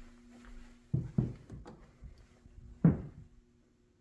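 A door latch clicks as a door opens.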